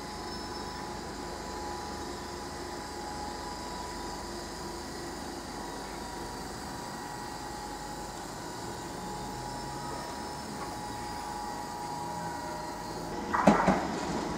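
A train rumbles past.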